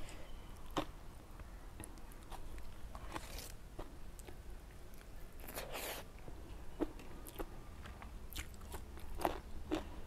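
A woman chews and crunches food close to a microphone.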